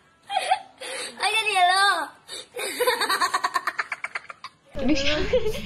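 A boy laughs loudly and shrilly close by.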